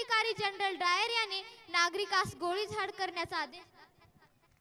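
A girl speaks with feeling into a microphone over a loudspeaker.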